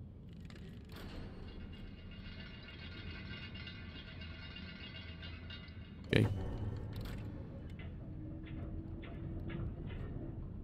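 A heavy metal chain rattles and clanks as it lowers a load.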